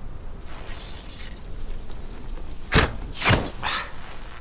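An arrow thuds into a target.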